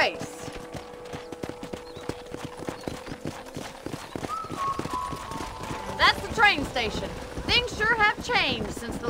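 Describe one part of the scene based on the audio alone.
Horse hooves clop steadily on dry ground.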